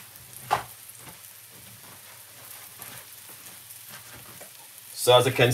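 Fish pieces sizzle and crackle softly in hot oil in a pan.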